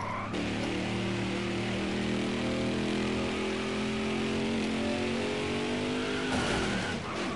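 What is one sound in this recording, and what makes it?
A V8 stock car engine roars at full throttle.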